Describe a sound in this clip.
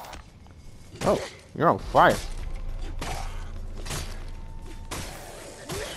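A blade hacks into flesh with heavy thuds.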